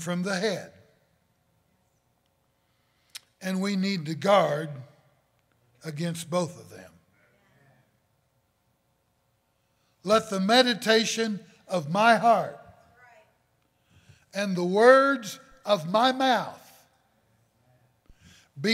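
An elderly man preaches forcefully through a microphone in pauses, his voice echoing in a large hall.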